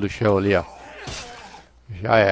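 A heavy blow strikes with a sharp thud.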